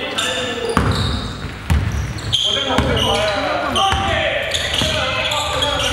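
A basketball bounces with loud thuds in an echoing gym.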